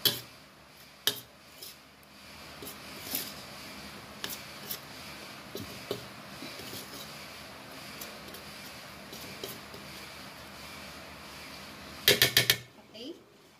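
A fork scrapes and stirs through flour in a bowl.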